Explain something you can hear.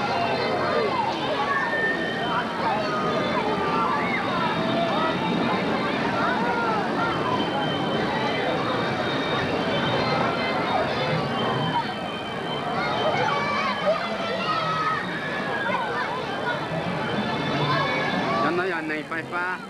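Carousel organ music plays steadily.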